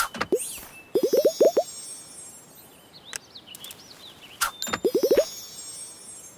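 Bubbles pop with quick rising chimes in a game.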